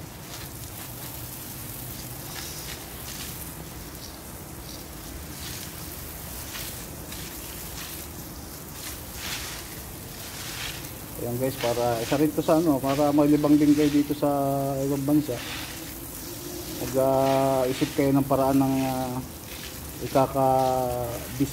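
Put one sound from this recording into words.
A water spray hisses steadily onto plants and soil.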